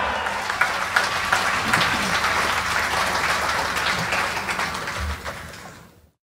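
A band plays lively Latin music with brass and percussion, then fades out.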